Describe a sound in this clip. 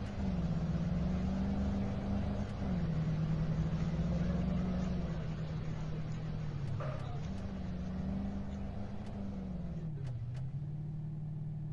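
A car engine hums steadily, its pitch dipping and rising as the car shifts speed.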